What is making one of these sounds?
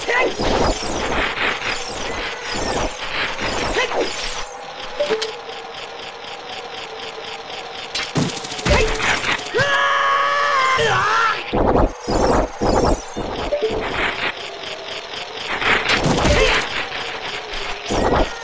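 Quiet game music plays steadily throughout.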